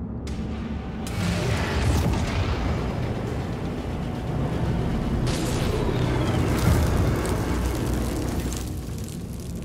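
A magical portal opens with a deep, rushing roar.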